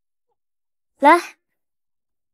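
A young woman speaks a short word calmly, close by.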